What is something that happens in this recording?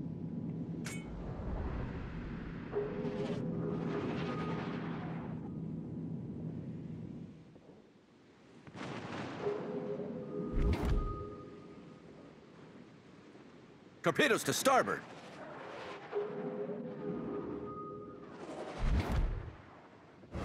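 Heavy naval guns fire in booming salvos.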